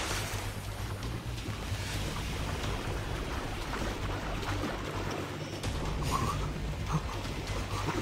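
Water splashes as a figure swims.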